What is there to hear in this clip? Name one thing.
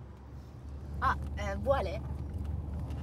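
A young woman speaks briefly in a bright, lilting voice close by.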